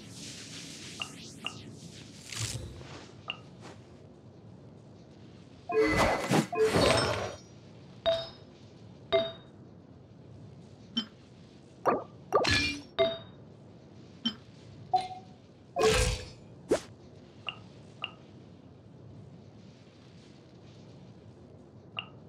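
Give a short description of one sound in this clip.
Soft menu clicks and chimes sound again and again.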